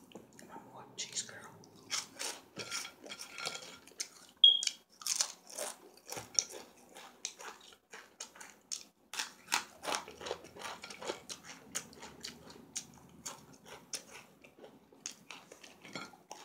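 A woman crunches and chews a crisp snack close by.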